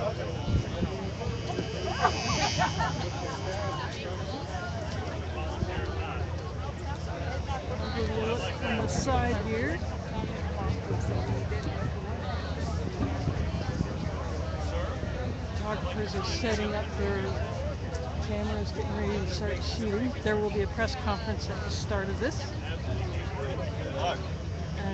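A crowd of men and women chatters outdoors, close by.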